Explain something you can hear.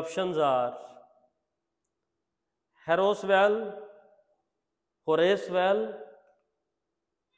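A man speaks clearly and calmly in short phrases, with pauses between them.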